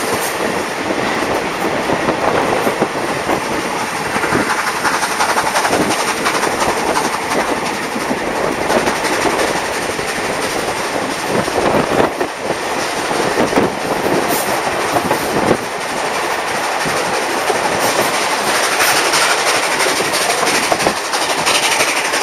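A train rattles and clatters steadily along its track.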